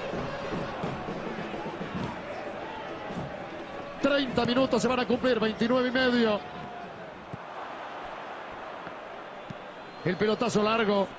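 A stadium crowd murmurs and chants in the distance.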